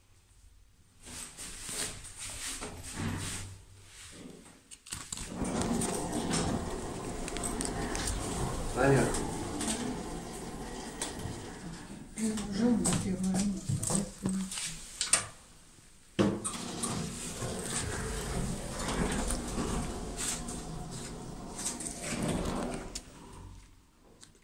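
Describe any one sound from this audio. A lift motor hums steadily as the car moves.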